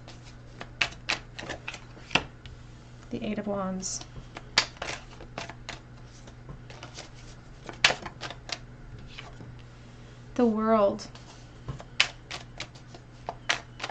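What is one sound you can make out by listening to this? A playing card is laid down softly on a cloth.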